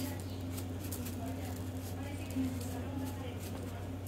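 Seasoning is shaken from a shaker onto raw meat.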